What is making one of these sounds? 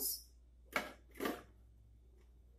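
Pieces of fruit plop into liquid in a blender jar.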